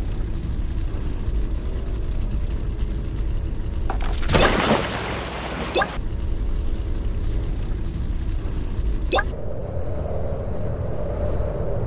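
A toy-like car engine hums steadily.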